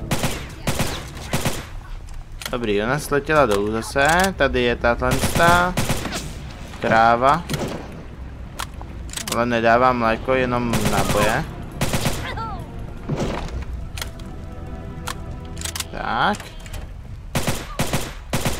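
Gunshots fire in sharp, quick bursts.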